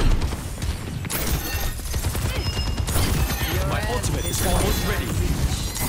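Magical weapons whoosh and crackle with bright energy blasts.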